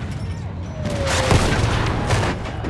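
A gun fires with a sharp bang.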